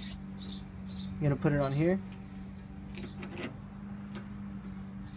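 Metal tools clink sharply.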